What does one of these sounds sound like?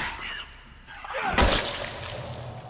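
A heavy blow lands with a loud thud.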